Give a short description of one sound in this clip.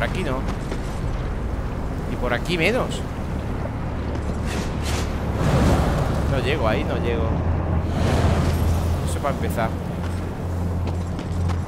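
A young man talks animatedly, close to a microphone.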